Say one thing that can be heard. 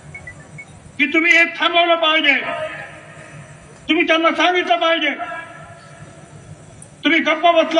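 An elderly man speaks forcefully into a microphone over loudspeakers, echoing outdoors.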